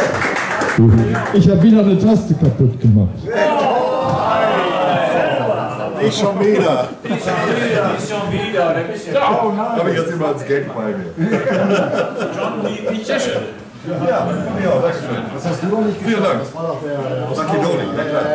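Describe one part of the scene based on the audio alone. Several men talk and chatter nearby after the music stops.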